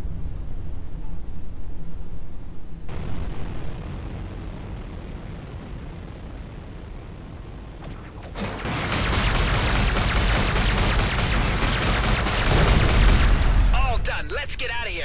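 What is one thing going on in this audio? A jet engine roars steadily and swells louder.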